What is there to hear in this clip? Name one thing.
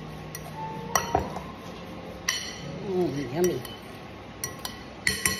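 Food clinks and rustles in a glass bowl as it is mixed by hand.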